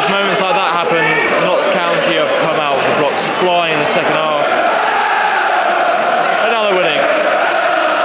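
A young man talks close to the microphone.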